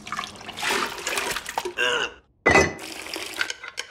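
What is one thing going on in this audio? Liquid pours and splashes.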